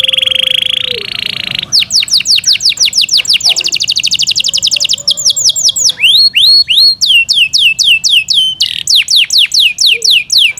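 A canary sings close by in a fast, rolling song of trills and whistles.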